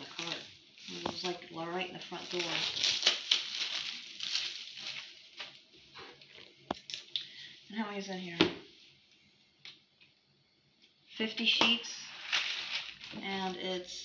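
Paper and cardboard rustle and crinkle as a woman handles them.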